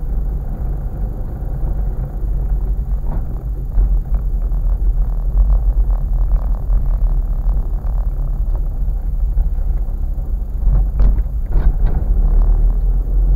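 Tyres crunch and rumble over a rough dirt road.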